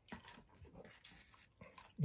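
A hand brushes against a cardboard pizza box.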